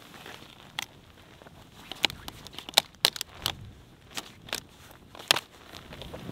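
Boots crunch in snow.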